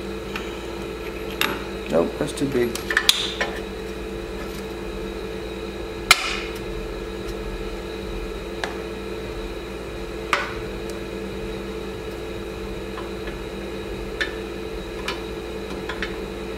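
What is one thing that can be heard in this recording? Metal tools clink and knock against engine parts.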